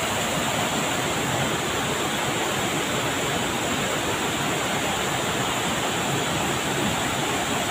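Water rushes loudly over rocks and pours down a waterfall, steady throughout.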